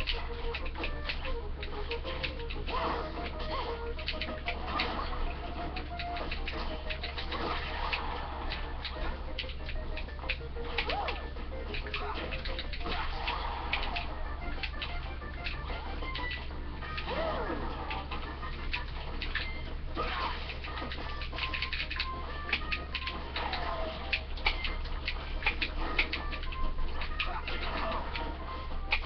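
Video game music plays with a bouncy melody.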